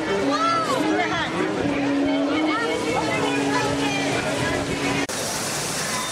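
A crowd of people chatter outdoors.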